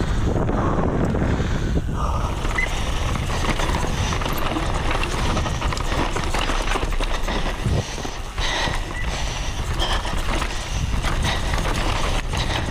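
Bicycle tyres rumble and skid over a dry dirt trail.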